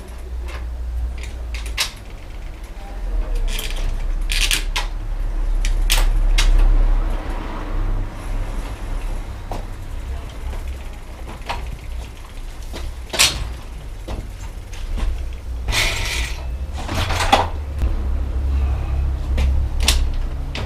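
A bicycle rattles and clanks as a man handles it.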